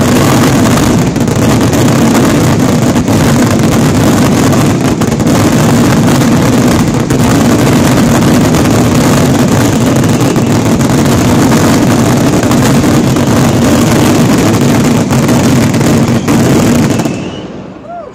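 A dense barrage of fireworks bursts in a continuous thundering roar.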